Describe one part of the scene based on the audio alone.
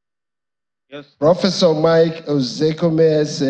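A second man speaks into a microphone.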